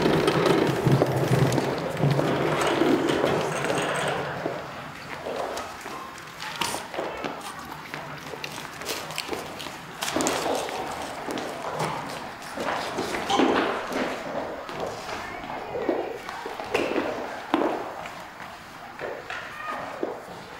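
A man talks in a large echoing room.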